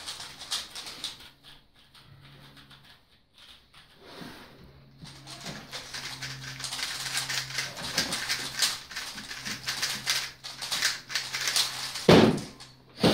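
Plastic puzzle cubes click and clatter rapidly as they are turned.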